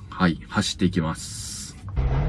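A young man talks close up.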